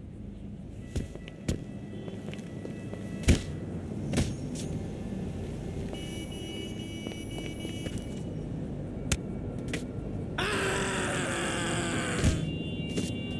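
A body thuds heavily onto a hard surface.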